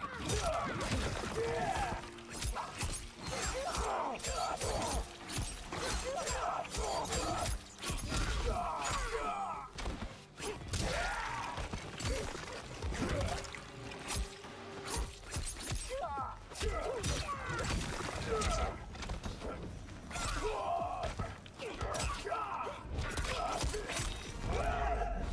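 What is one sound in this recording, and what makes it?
Punches and kicks land with heavy thuds and smacks.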